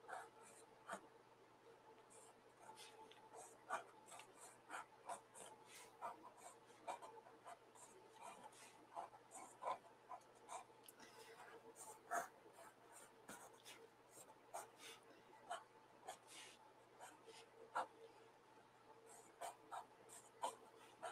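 A pencil scratches and taps lightly on paper.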